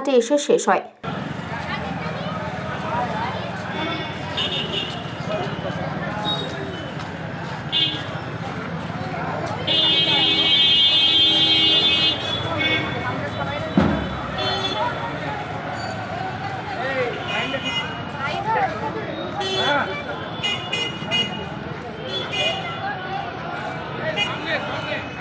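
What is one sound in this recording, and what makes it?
A crowd of people chatter and murmur outdoors while walking.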